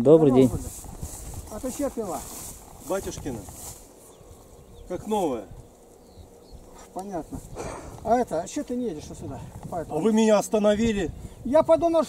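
Another elderly man answers calmly nearby.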